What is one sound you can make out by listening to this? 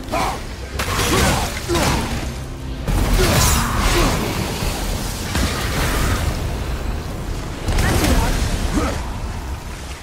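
A heavy axe swings and strikes with loud thuds.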